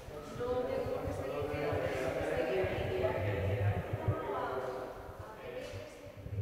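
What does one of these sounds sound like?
A young woman speaks cheerfully into a microphone up close.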